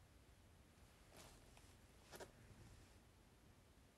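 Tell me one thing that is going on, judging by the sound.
Plastic wrapping rustles.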